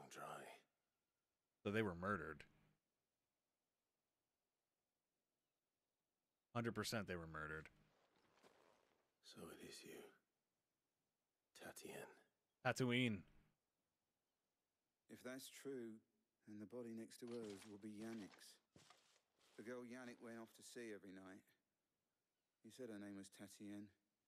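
A man talks calmly through a microphone, in short bursts with pauses.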